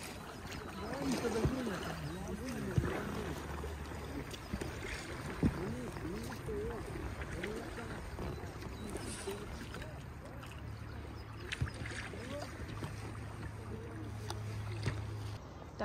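Oars splash and dip in calm water.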